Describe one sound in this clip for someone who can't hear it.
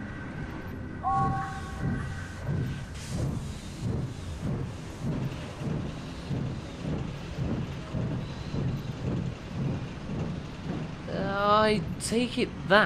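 A steam engine chuffs in a steady rhythm.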